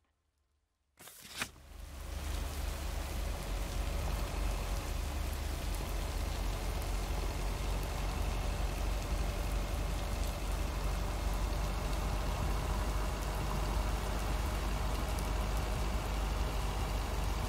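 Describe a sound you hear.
A delivery truck's engine rumbles steadily as the truck drives along.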